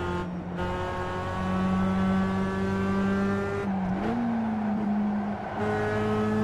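A race car engine drones loudly, rising and dropping in pitch as gears shift.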